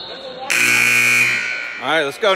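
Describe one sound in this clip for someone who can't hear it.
A buzzer sounds loudly in a large echoing gym.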